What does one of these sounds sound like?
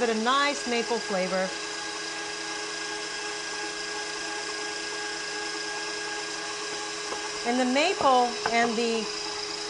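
A stand mixer whirs steadily as it beats a batter.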